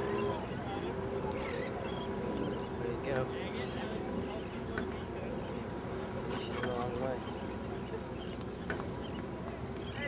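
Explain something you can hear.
Small waves lap and wash gently nearby.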